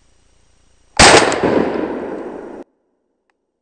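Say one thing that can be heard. A shotgun fires a single loud blast that echoes away.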